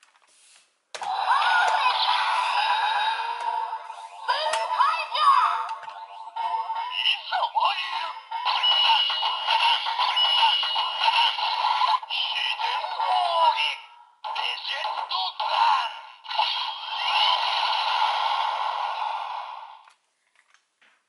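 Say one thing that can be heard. A toy sword plays loud electronic sound effects and music through a small speaker.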